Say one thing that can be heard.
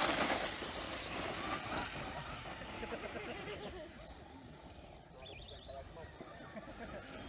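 An electric toy car's motor whines as the car drives off over grass and fades into the distance.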